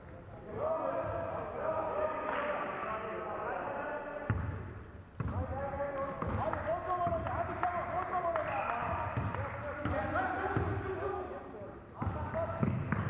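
Young men shout to each other across an echoing court.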